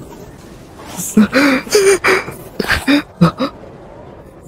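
A young man groans and cries out in pain.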